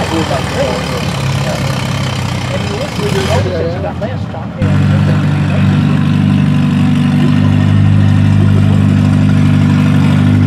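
A tractor engine rumbles nearby, then roars louder and steadily.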